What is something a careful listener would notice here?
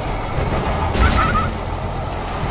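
A bright magical blast bursts with a sharp whoosh.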